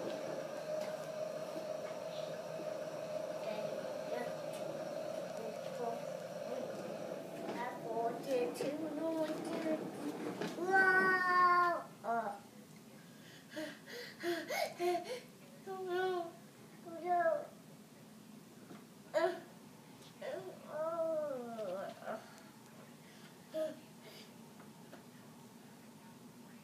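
Plastic wheels of a ride-on toy rumble over a tiled floor.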